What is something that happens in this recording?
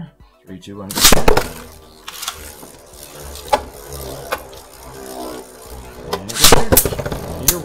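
A spinning top snaps out of its launcher into a plastic dish.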